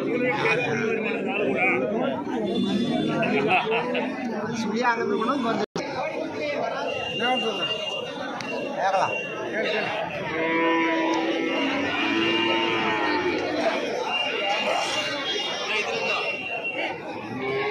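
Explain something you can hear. A crowd of men talk all around outdoors.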